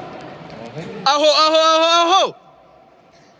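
A young man lets out a long, loud shout.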